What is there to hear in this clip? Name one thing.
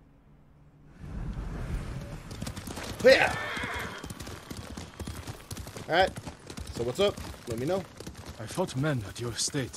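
Horses gallop along a dirt path with hooves thudding.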